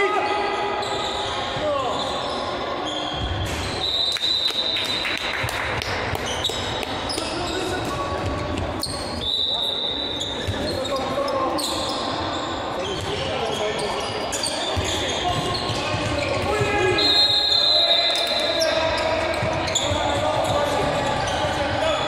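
A ball thuds on the floor.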